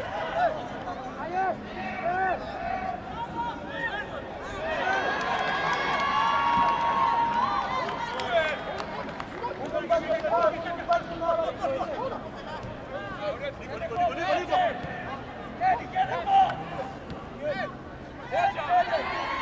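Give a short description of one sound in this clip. A crowd shouts and cheers in an open-air stadium.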